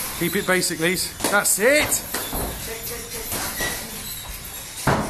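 Gloved punches thud against pads.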